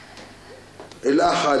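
A young woman speaks up suddenly and with emotion, close by.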